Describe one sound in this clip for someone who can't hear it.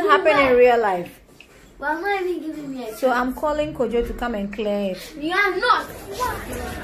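A young child talks in a high, lively voice close by.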